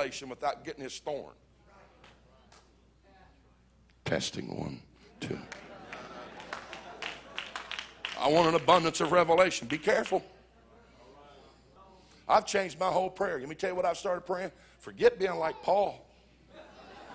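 A middle-aged man speaks with animation through a microphone in a large hall, pausing between phrases.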